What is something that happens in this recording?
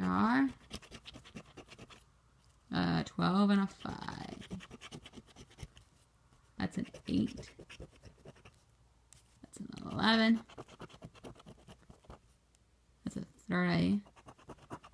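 A coin scratches at a lottery ticket with quick, rasping strokes.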